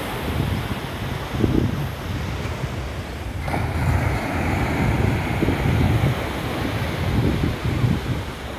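Small waves wash softly onto the shore.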